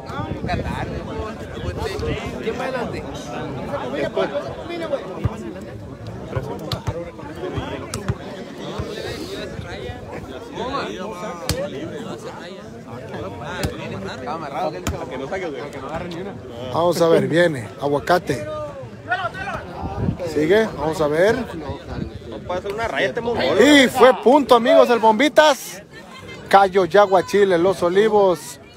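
A large outdoor crowd of men chatters and cheers.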